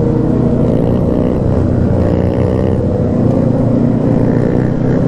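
A motorcycle engine rumbles loudly up close as it rides along.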